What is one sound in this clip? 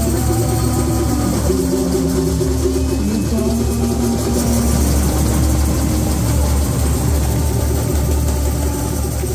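A samba drum band plays a loud, driving rhythm.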